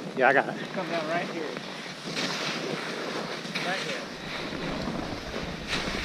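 Skis hiss and scrape over powder snow.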